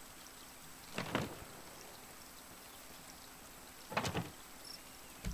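Wooden boxes knock softly as they are set down.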